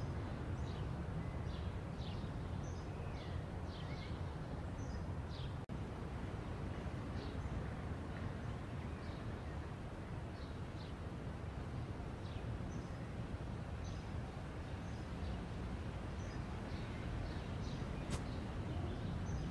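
Birds chirp softly.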